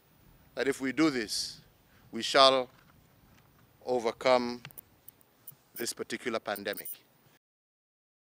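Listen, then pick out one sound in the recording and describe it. A man speaks forcefully into a microphone.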